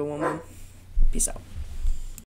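A hand brushes against the microphone.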